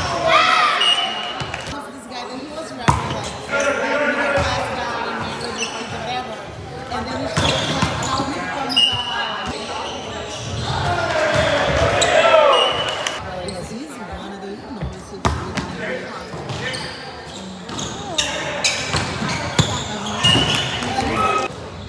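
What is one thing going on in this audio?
Young men call out and shout to each other in a large echoing gym.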